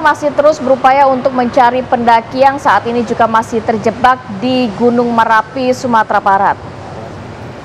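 A woman speaks calmly and clearly into a microphone, as if presenting news.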